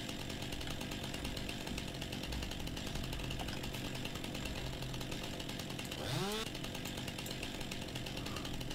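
A chainsaw idles and buzzes steadily.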